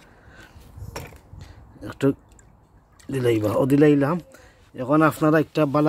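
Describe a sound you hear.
Liquid pours and trickles into a plastic watering can.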